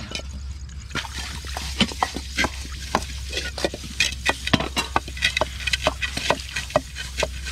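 Metal pans and dishes clatter as they are washed.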